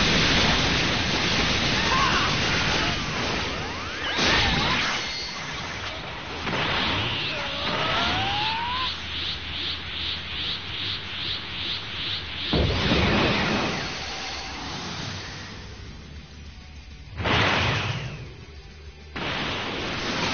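Energy blasts whoosh and roar in bursts.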